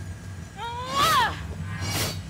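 A sword swings through the air with a swoosh.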